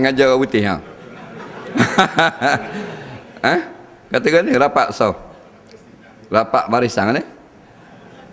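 A man chants loudly in a large echoing hall, in short phrases with pauses between them.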